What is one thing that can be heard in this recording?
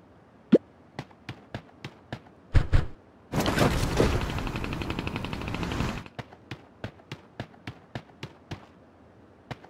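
Quick footsteps patter on the ground.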